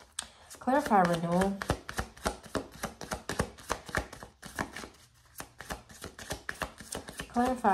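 Cards riffle and snap as they are shuffled.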